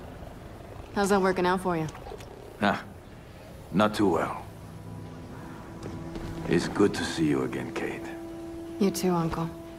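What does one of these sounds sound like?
A woman speaks quietly and seriously.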